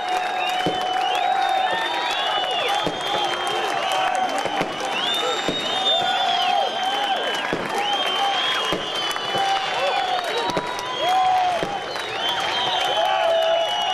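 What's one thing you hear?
A large crowd cheers and makes noise in an open stadium.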